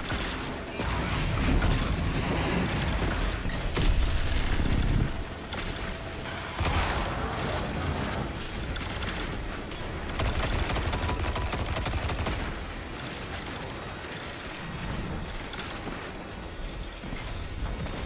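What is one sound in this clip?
A gun fires rapidly.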